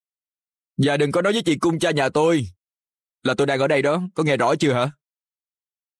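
A young man speaks calmly up close.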